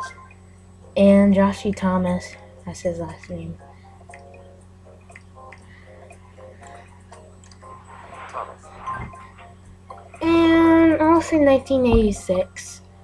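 A handheld game console plays short tuneful sounds through its small speaker.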